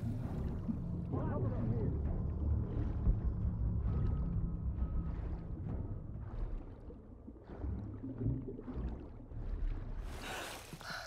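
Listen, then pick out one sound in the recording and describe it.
Water rumbles and gurgles, heard muffled from underwater.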